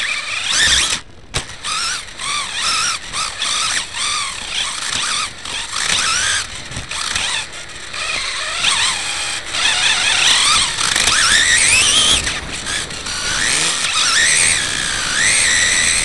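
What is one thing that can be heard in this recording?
A small electric motor whines, rising and falling in pitch as a toy car speeds up and slows down.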